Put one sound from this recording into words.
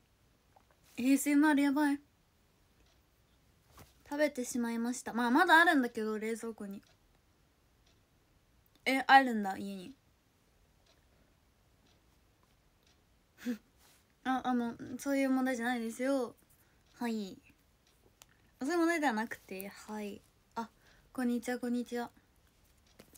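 A young woman talks calmly close to a microphone, in short bursts with pauses.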